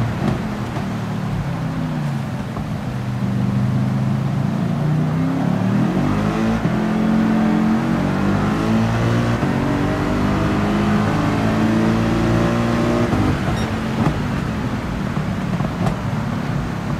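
Other racing cars' engines drone close by.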